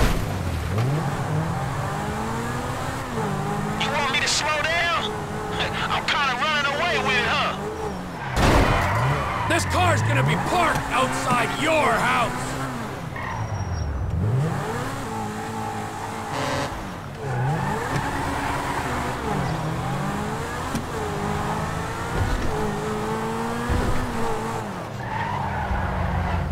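A sports car engine revs up and down as it races along.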